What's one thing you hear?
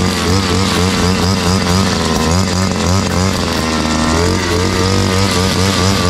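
A trimmer line whips and cuts through grass.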